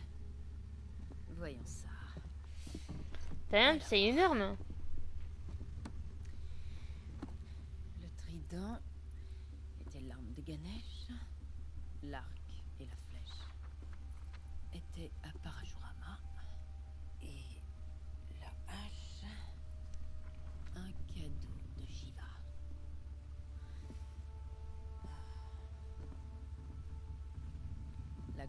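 Young women talk calmly to each other.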